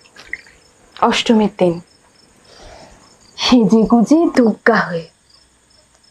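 A woman speaks gently and warmly, close by.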